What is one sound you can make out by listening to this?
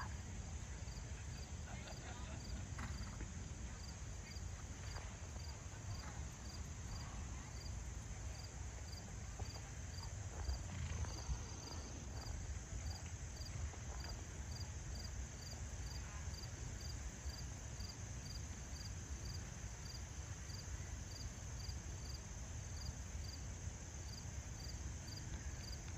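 A horse trots on soft sand in the distance.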